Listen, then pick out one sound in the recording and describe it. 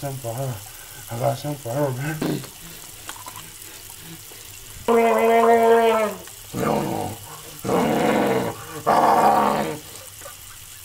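A man groans and hums loudly with a mouthful of foam, close by.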